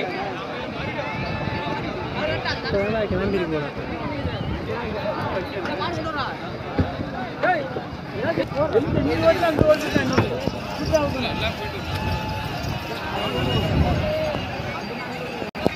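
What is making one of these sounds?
A large crowd of men shouts and chatters outdoors.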